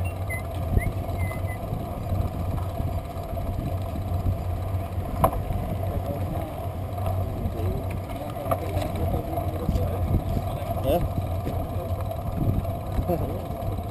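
A bicycle rattles and clicks over the pavement.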